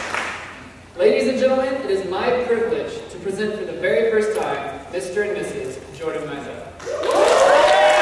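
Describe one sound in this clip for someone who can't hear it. A man speaks calmly in a large echoing room.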